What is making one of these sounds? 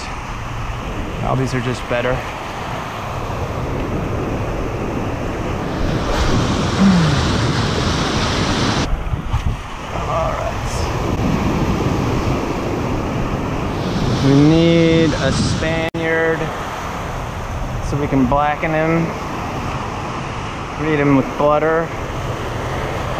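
Waves break and wash up close by, outdoors in wind.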